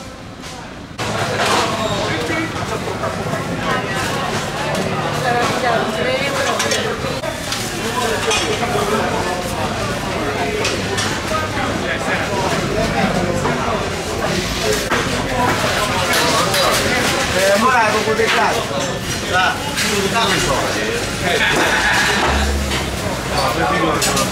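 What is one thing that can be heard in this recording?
A busy market crowd chatters all around.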